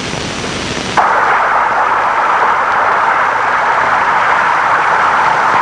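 Waves surge and foam over rocks.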